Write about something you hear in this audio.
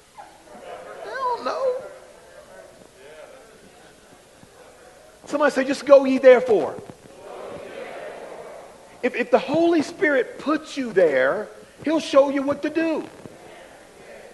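A middle-aged man preaches with animation through a microphone.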